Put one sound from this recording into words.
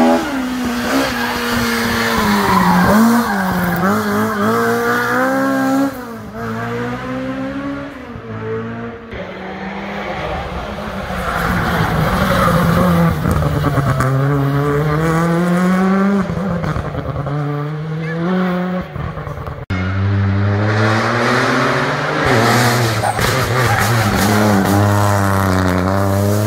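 A rally car engine revs hard and roars past, rising and falling in pitch.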